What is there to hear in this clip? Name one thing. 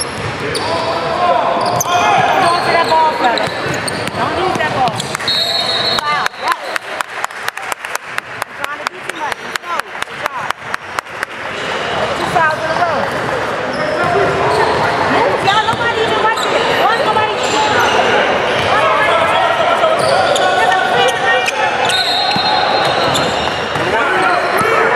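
Young men talk and shout in an echoing gym.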